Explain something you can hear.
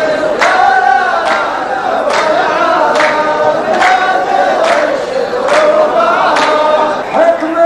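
Men clap their hands in a slow, steady rhythm.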